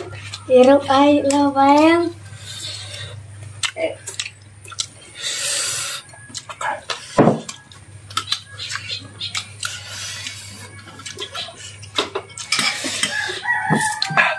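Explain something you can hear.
A spoon scrapes and clinks against a plate.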